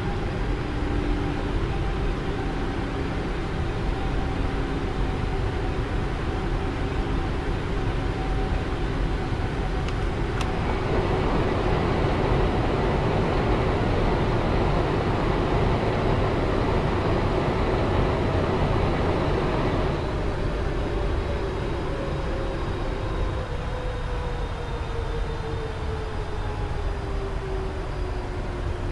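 Wind rushes around an aircraft.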